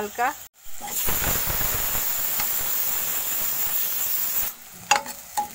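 Food sizzles loudly in hot oil in a wok.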